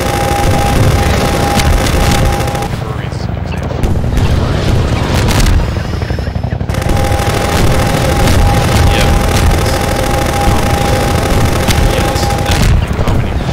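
A gun fires rapidly.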